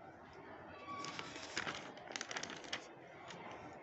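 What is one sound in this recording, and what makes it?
A page of paper rustles and crackles as it is turned.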